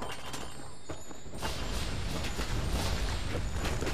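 A magical burst whooshes and shimmers.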